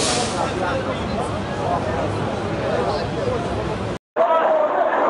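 A crowd of men shouts nearby outdoors.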